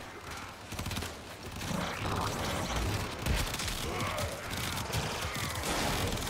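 Heavy booms and impacts thud repeatedly.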